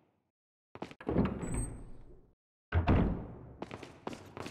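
A gunshot booms and echoes.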